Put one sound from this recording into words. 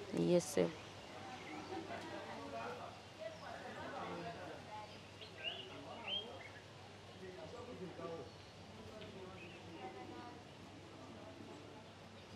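A woman speaks calmly and quietly into a close microphone.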